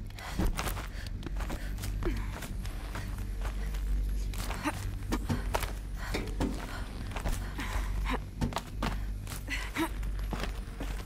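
A person climbs along a rough stone wall, scraping and knocking.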